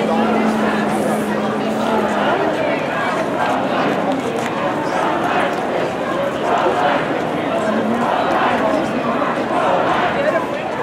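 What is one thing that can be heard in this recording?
A crowd of men and women chatters on all sides outdoors.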